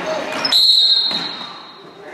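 A referee's whistle blows sharply in an echoing gym.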